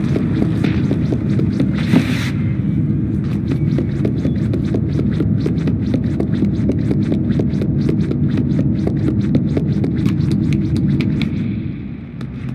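Small quick footsteps patter across wooden floorboards.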